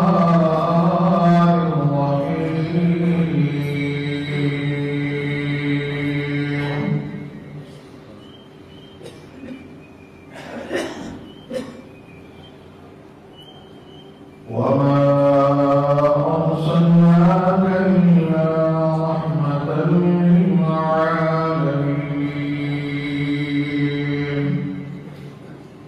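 An elderly man chants in a long, drawn-out melodic recitation through a microphone.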